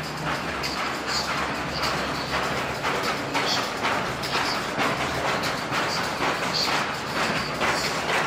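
Heavy ropes slap rhythmically against the floor.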